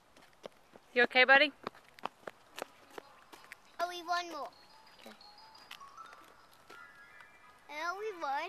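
A young child calls out loudly nearby in a high voice.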